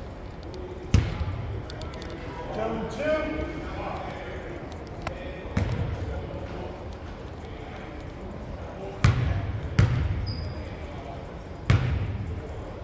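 A basketball bounces on a wooden court in a large echoing gym.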